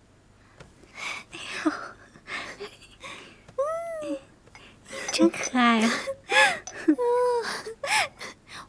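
Young women laugh and chatter cheerfully together.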